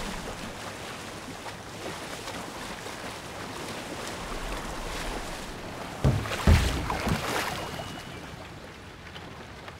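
Water splashes and laps against a rowing boat's hull.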